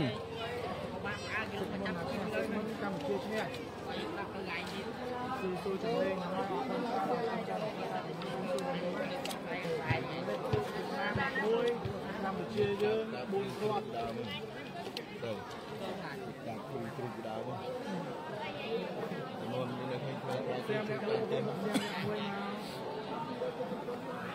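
A large outdoor crowd chatters and calls out throughout.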